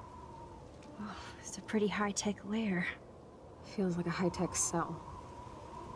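A young woman speaks quietly and calmly, close by.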